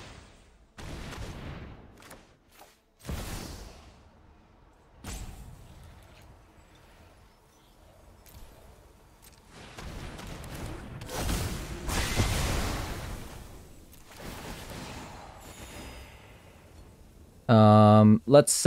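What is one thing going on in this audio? Magical game sound effects whoosh and shimmer in short bursts.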